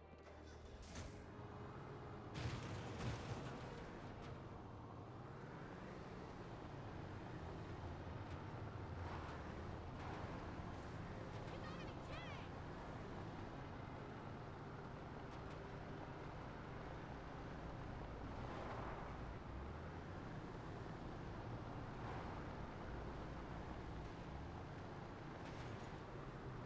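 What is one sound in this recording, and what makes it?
A buggy's engine hums steadily as it drives over rough ground.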